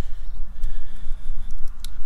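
Thick sauce pours with a wet slop into a pot.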